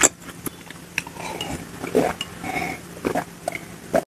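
A young woman gulps down a drink close to a microphone.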